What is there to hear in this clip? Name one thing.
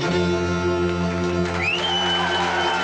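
A folk band with fiddle and guitar finishes a tune.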